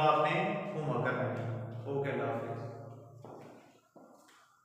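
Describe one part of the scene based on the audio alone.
A man speaks clearly and steadily close to a microphone, in a room with some echo.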